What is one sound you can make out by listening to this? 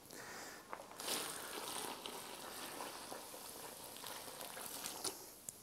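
Liquid pours and splashes onto soil.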